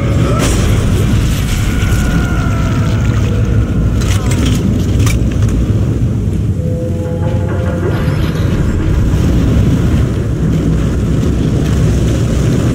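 Heavy boots tread on a metal floor.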